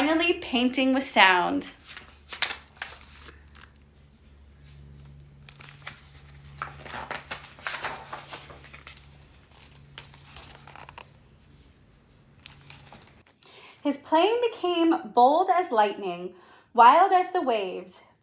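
A woman reads a story aloud with animation, close by.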